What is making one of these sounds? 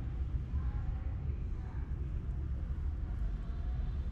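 A spoon stirs and clinks softly in a glass of coffee.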